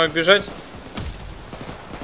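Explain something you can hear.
Gunshots crack nearby in a video game.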